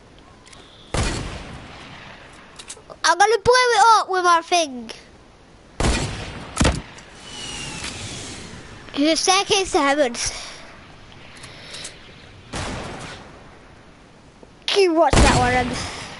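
A rocket launcher fires with a loud boom.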